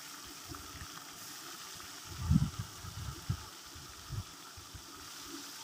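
Oil sizzles softly in a frying pan.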